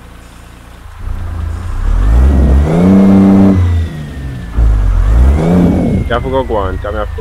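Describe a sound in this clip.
A heavy truck engine roars and revs up and down.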